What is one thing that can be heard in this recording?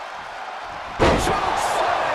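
A body slams hard onto a ring mat with a loud thud.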